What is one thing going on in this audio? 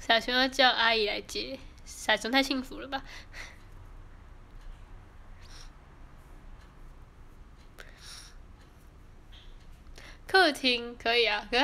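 A young woman speaks softly and closely, in short bursts.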